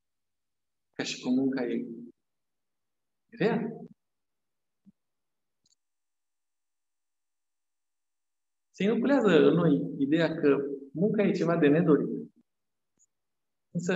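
A middle-aged man speaks calmly into a microphone, with long pauses.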